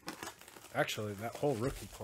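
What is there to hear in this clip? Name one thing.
Plastic wrap crinkles as it is torn off a box.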